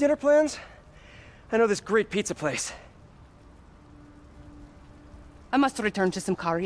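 A young woman speaks calmly and closely, in short phrases with pauses.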